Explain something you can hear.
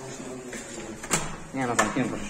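A metal door handle clicks as it is pressed down.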